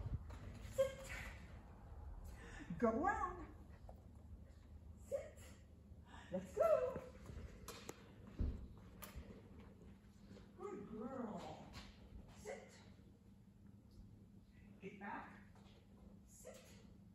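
A woman speaks to a dog in a high, encouraging voice.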